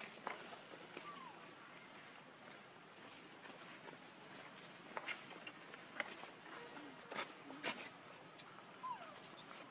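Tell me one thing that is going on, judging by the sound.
Baby monkeys squeak softly now and then.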